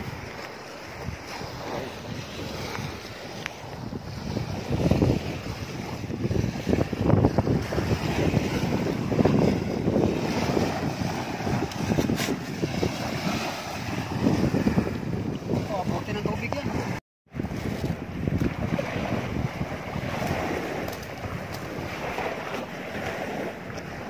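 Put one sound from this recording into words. Small waves wash gently onto the shore outdoors.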